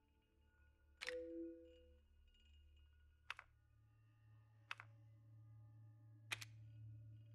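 Short menu clicks sound several times.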